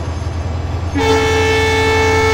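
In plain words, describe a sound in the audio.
A locomotive horn blares loudly.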